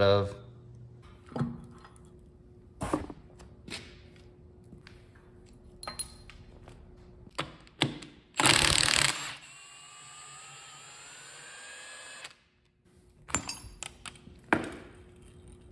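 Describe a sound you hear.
Metal parts clank against each other.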